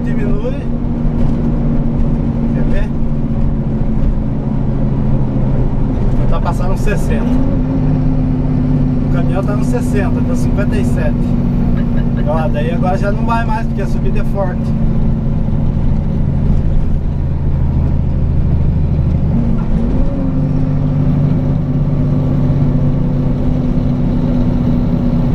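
A truck engine drones steadily from inside the cab, briefly rising in pitch at gear changes.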